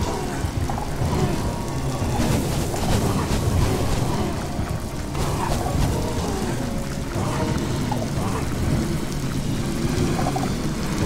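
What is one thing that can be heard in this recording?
Many fires crackle and roar steadily.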